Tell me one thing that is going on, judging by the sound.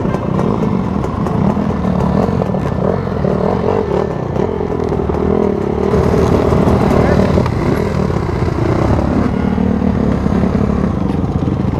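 Several motorbike engines rumble nearby.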